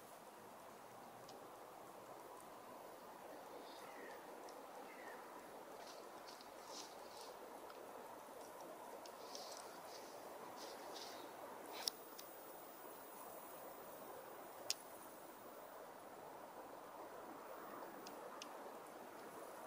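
Footsteps rustle through dry fallen leaves.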